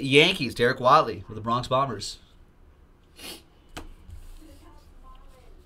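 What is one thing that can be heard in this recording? A plastic card case clicks and rustles in hands.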